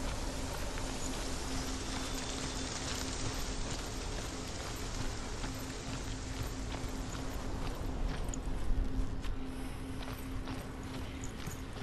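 Footsteps run over stone and grass.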